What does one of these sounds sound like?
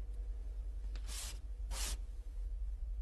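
Chalk scrapes and taps on a blackboard.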